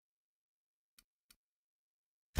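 Two soft menu clicks sound.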